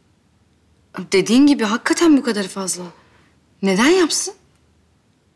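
A young woman speaks anxiously, close by.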